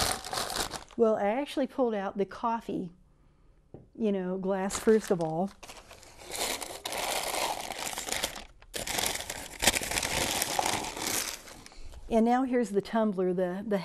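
A middle-aged woman speaks in long, drawn-out, sing-song tones close to a microphone.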